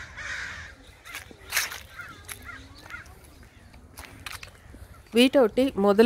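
Footsteps crunch over dry leaves on pavement.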